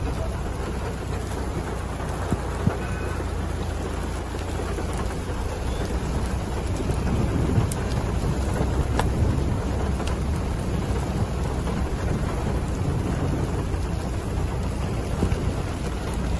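Wind blows hard, rumbling and buffeting outdoors.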